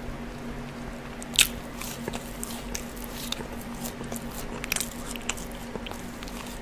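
A young man crunches and chews food close to a microphone.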